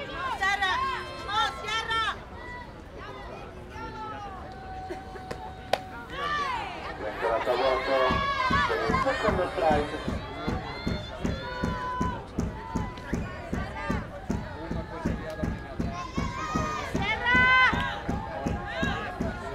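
Young women chant loudly together.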